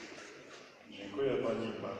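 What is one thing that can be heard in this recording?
A middle-aged man speaks through a microphone.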